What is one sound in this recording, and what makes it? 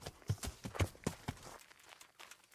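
A horse's hooves thud heavily on the ground.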